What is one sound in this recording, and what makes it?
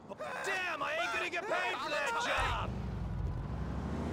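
A car door opens and shuts.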